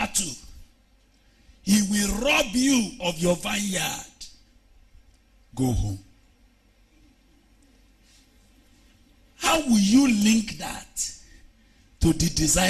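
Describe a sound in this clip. A man preaches with animation into a microphone, in bursts with pauses.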